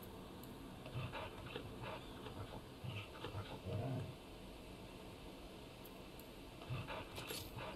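A wolf howls.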